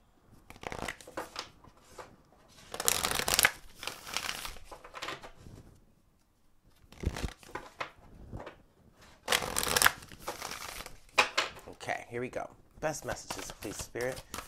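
Playing cards are shuffled with a riffling flutter.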